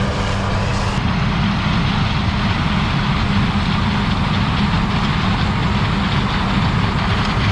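A diesel four-wheel-drive tractor rumbles.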